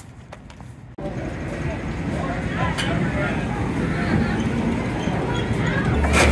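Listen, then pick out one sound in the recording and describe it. Arcade machines chime and jingle in a busy, noisy hall.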